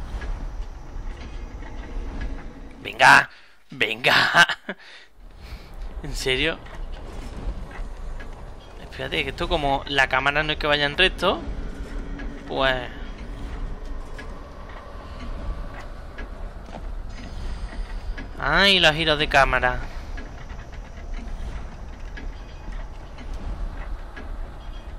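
Large clockwork gears turn with a low, steady mechanical hum.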